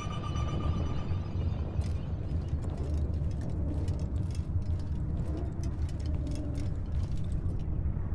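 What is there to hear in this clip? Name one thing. Footsteps walk slowly on stone.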